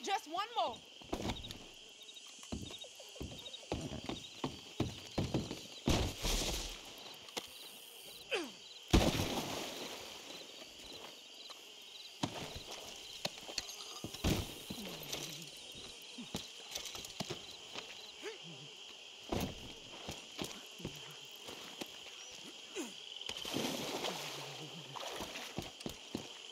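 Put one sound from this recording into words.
Footsteps squelch and thud on wet, muddy ground.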